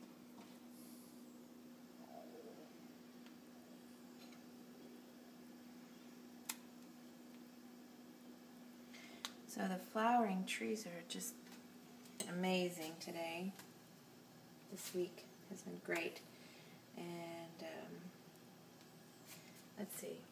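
Bread sizzles gently in hot oil in a pan.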